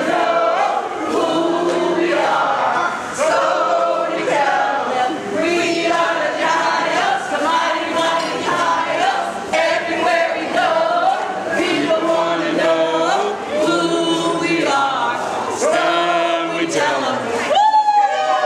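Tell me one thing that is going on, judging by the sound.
Women sing along.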